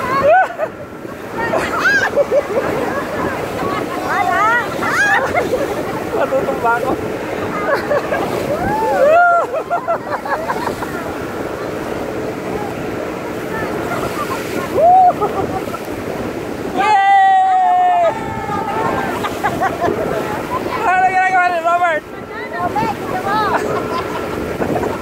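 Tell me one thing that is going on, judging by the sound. A group of people shout and scream with excitement up close.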